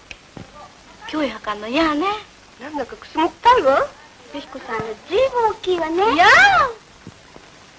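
Teenage girls talk among themselves on an old film soundtrack.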